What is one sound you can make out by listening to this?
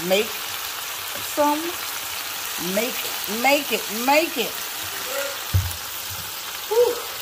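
Meat sizzles in hot oil in a frying pan.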